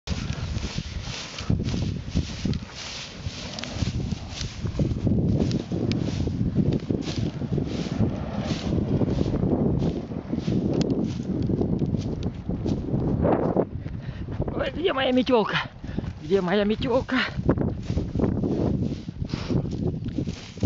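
A broom beats and swishes against burning grass in steady blows.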